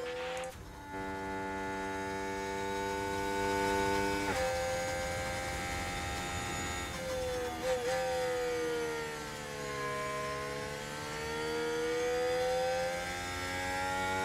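A racing car engine whines at high pitch, rising and falling as it shifts gears.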